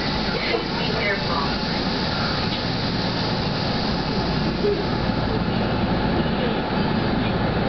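Rain patters on a train window.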